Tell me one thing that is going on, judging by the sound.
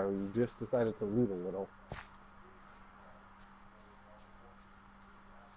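Footsteps rustle steadily through grass.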